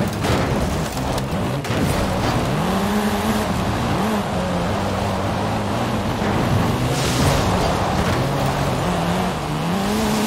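Cars bump and knock against each other.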